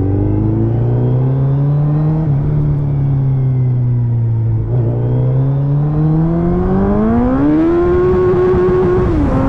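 A motorcycle engine hums steadily, then revs up higher.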